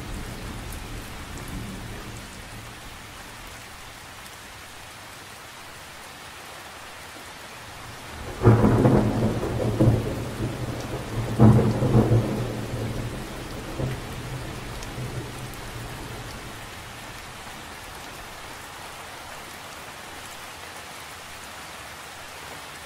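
Light rain patters steadily on the surface of a lake.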